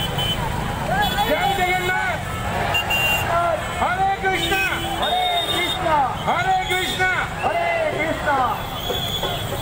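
A crowd of men chants loudly in rising and falling voices.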